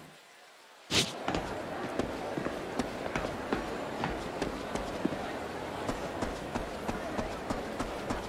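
Running footsteps patter quickly and steadily.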